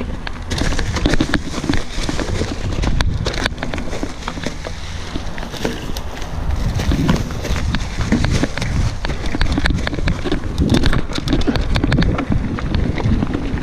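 Bicycle tyres roll and crunch over a dry leafy dirt trail.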